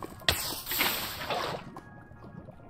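Water splashes and lava hisses as water pours over it.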